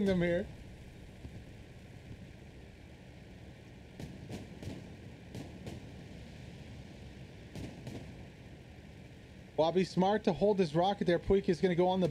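Tank tracks clatter.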